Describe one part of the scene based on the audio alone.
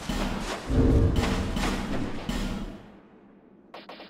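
Footsteps run over a stone floor.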